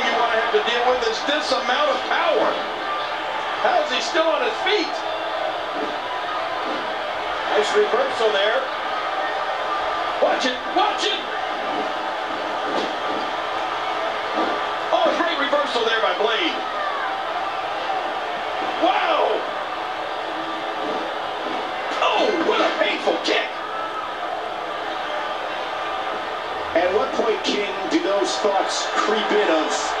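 A crowd cheers steadily through a television speaker.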